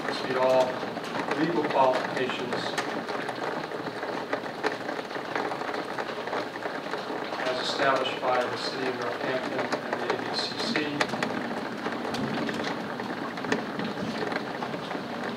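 An older woman speaks calmly through a microphone in a room with echo.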